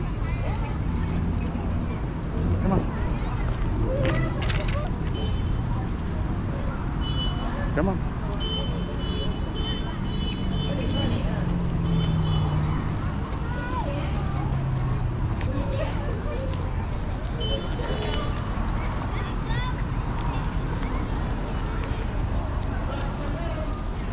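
Small bells jingle on a dog's collar.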